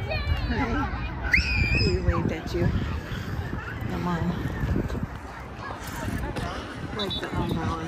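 Children and adults chatter outdoors in a lively crowd.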